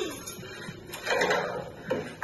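A young woman gasps loudly in surprise.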